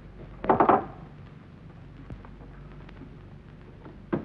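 A man rushes across a wooden floor with quick footsteps.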